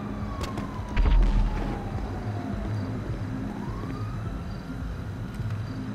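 Footsteps run quickly on pavement outdoors.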